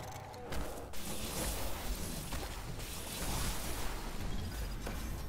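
An energy blast crackles and explodes in a video game.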